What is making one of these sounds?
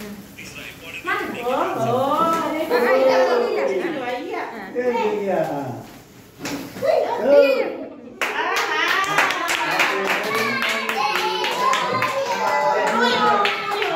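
A group of women and children sing together nearby.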